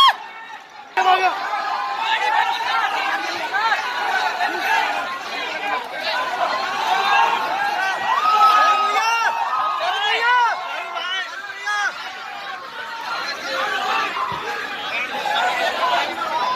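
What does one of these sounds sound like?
A large crowd cheers, shouts and screams excitedly outdoors.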